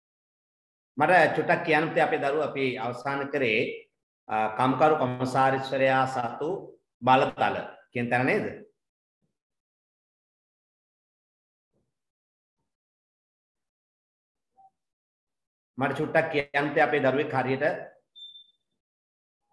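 A man lectures calmly through a microphone, with pauses.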